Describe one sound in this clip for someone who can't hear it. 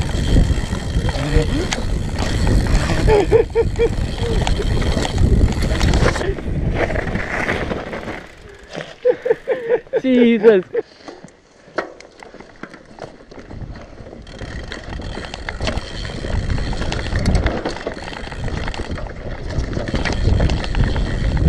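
Mountain bike tyres rumble and rattle over a bumpy dirt trail.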